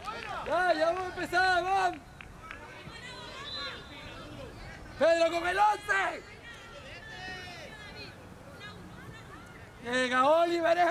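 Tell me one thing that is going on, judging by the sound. Young men shout loudly to each other across an open field.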